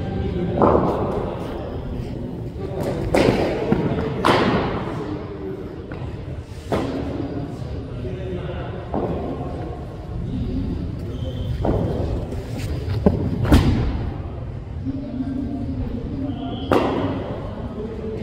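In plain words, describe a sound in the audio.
A bowler's shoes scuff and thud on the artificial turf.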